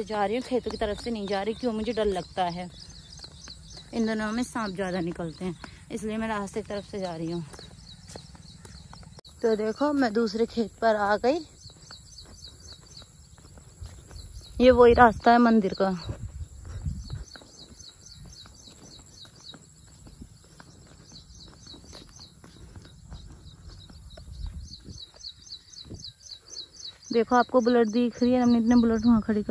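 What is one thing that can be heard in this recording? A young woman talks close by, in short calm phrases.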